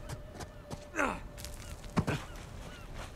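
A man drops down onto rocky ground with a thud.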